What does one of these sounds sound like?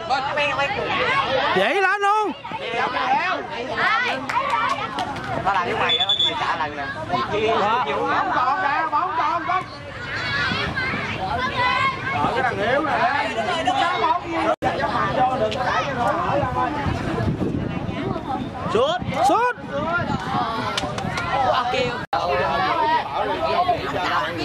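Young boys shout and call out to each other outdoors.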